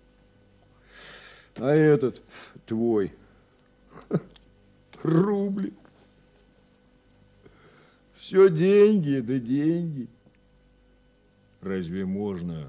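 An elderly man speaks with animation and expressive, theatrical intonation.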